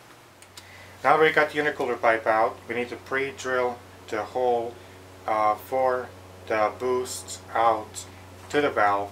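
A young man talks calmly and closely.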